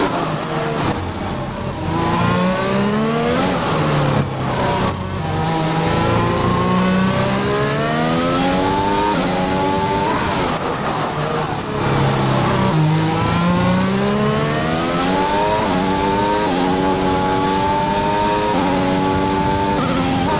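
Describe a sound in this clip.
A racing car engine screams, rising in pitch through the gears and dropping when braking.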